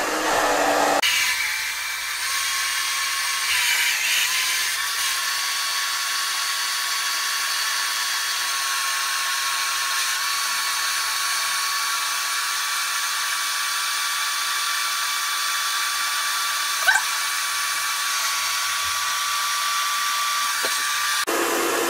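A hair dryer blows with a steady high whine.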